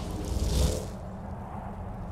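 A horse's hooves clop on stone.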